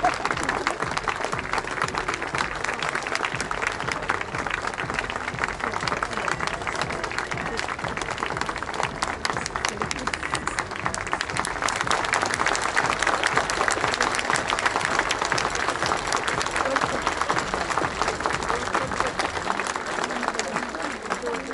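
Fans nearby clap their hands rapidly.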